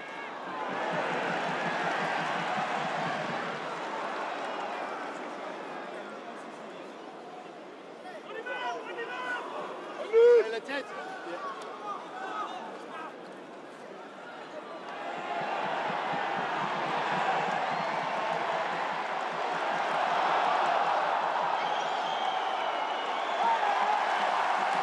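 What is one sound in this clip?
A large crowd roars in an open stadium, swelling loudly near the end.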